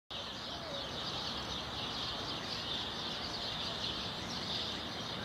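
Distant city traffic hums steadily.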